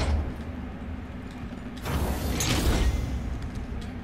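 A heavy metal door slides open with a loud rumble.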